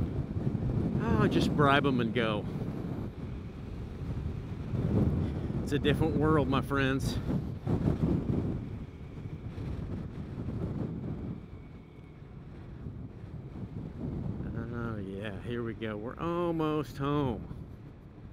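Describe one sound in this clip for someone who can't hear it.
A man speaks casually, close to a microphone.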